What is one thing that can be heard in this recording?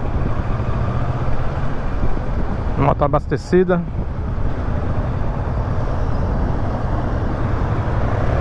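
A motorcycle engine rumbles steadily up close.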